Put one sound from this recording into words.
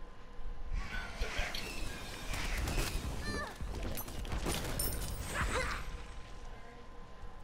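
Game weapons clash and magic blasts burst in a fight.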